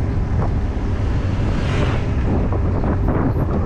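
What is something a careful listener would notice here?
A motor scooter passes by close and quickly fades.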